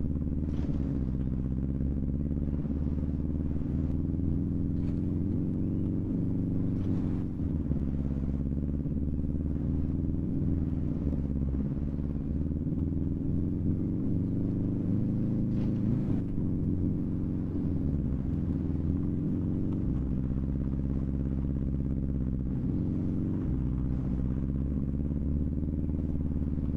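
Tyres crunch and skid over gravel.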